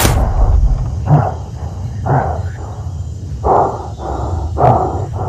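A young man talks into a headset microphone.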